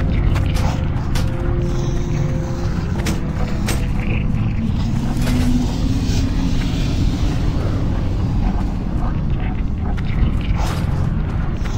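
Footsteps tread steadily on stone as a game character walks.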